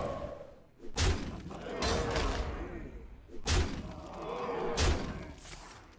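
Sharp impacts thud and crackle.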